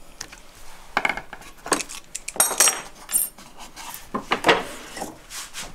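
A wooden board knocks and scrapes against a wooden bench.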